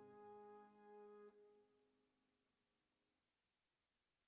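A piano plays a held chord that slowly fades away.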